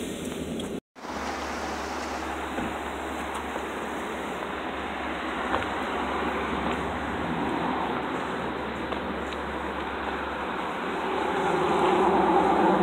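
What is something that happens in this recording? Footsteps scuff on asphalt outdoors.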